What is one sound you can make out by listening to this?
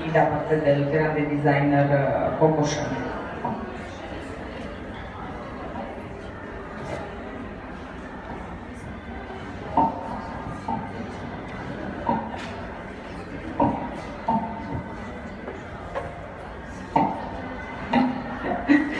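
A woman speaks into a microphone, heard through loudspeakers in an echoing room.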